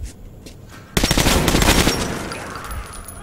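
A rifle fires a rapid burst of shots in an enclosed room.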